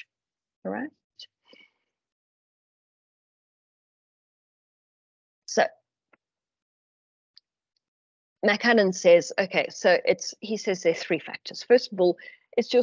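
An older woman speaks calmly through an online call, with long pauses.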